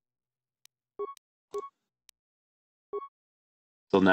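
Short electronic menu beeps chirp one at a time.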